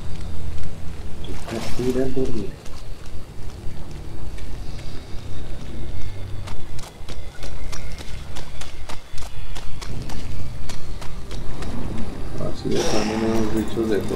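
Footsteps tread steadily over soft ground.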